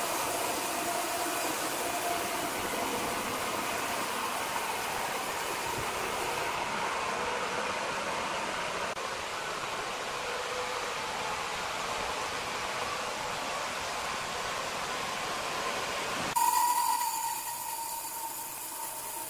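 A large band saw machine hums steadily.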